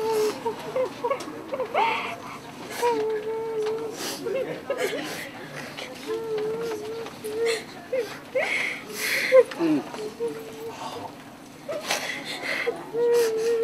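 A woman sobs and wails loudly close by.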